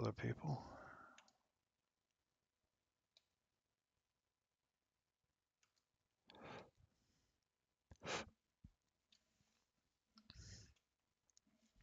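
A young man speaks calmly into a headset microphone, in short bursts.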